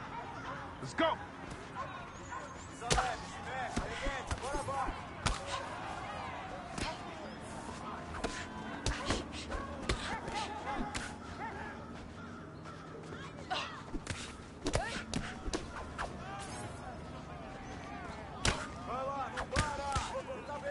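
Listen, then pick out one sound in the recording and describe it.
Punches thud against bodies in quick bursts.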